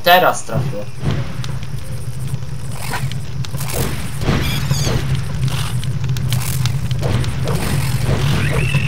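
Flames roar and crackle close by.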